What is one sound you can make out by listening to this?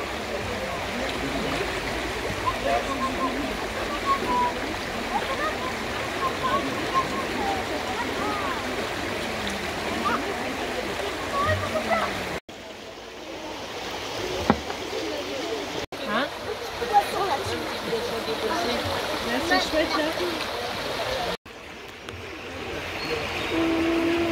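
A shallow stream babbles over rocks nearby.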